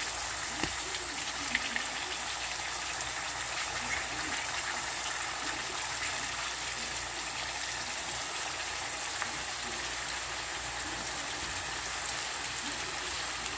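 Potato slices sizzle steadily in hot oil.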